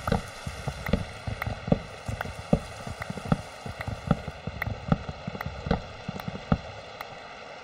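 Wooden blocks are broken with quick repeated knocks.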